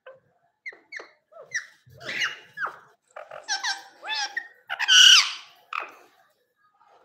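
A rose-ringed parakeet chatters in short chirping calls.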